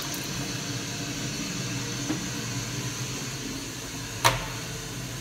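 Water swirls and gurgles in a toilet bowl as a flush finishes.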